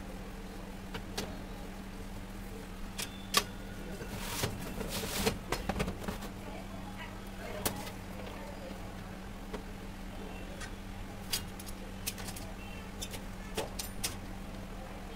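Thin wooden pieces clatter and tap as they are lifted and set down on a metal grid.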